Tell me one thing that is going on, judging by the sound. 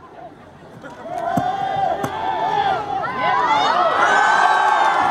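A crowd cheers and shouts, growing louder.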